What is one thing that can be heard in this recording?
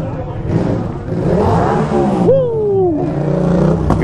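A motorcycle roars past close by.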